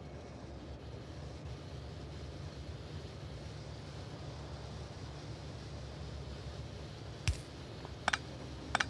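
Machines hum and whir steadily.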